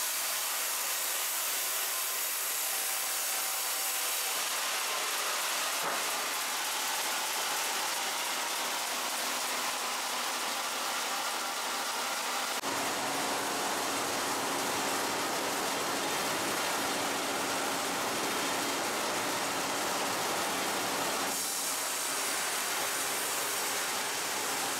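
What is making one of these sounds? Heavy machinery runs with a steady, noisy roar in a large echoing hall.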